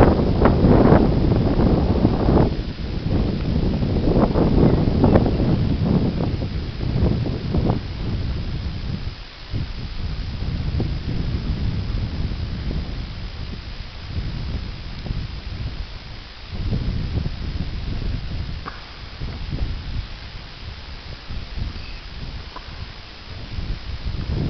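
A horse's hooves thud on dry ground.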